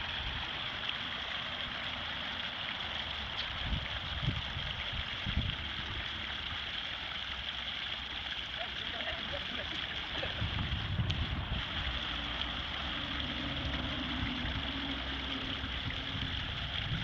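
A fountain splashes steadily outdoors.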